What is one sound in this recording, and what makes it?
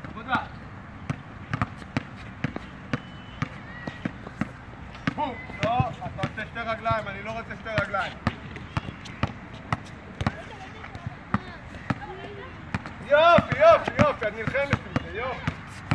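A basketball bounces steadily on a hard court outdoors.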